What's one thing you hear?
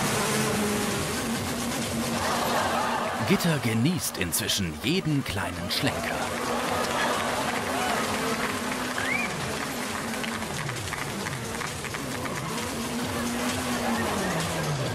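A rally car engine roars and revs.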